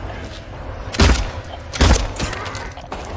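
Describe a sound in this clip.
Two loud gunshots ring out and echo.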